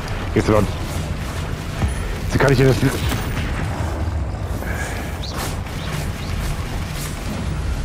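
A large troll growls and roars.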